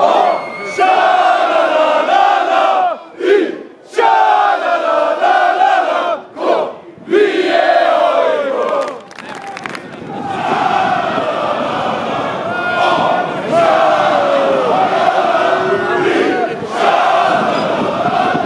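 A large crowd chants loudly outdoors.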